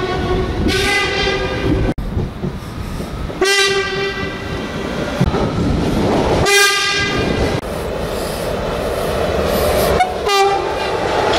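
A train horn sounds loudly.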